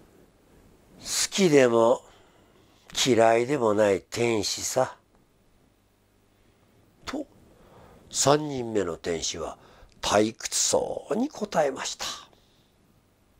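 An elderly man reads aloud calmly and expressively, close to a microphone.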